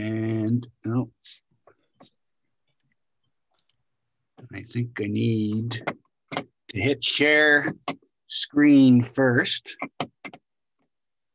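An older man speaks in bursts over an online call, with pauses between phrases.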